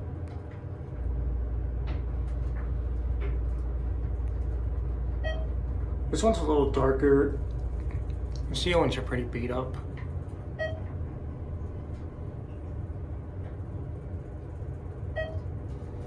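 An elevator hums steadily as it rises.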